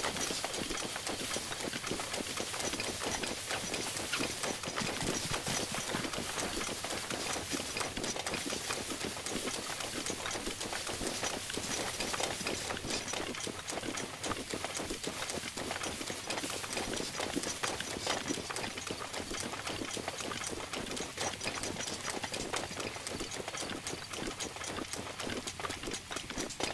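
Steady rain hisses down outdoors.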